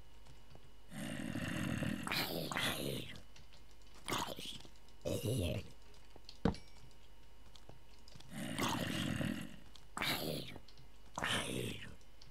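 A zombie groans low and hoarsely, again and again.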